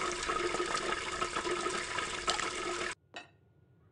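Oil sizzles and crackles steadily in a fryer.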